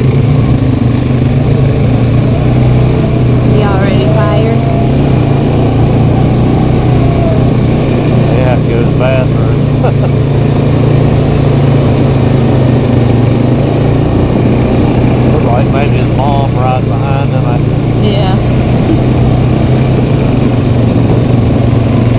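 An ATV engine rumbles steadily up close.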